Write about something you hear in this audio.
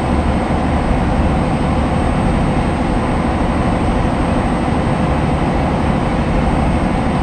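A truck engine drones steadily inside the cab.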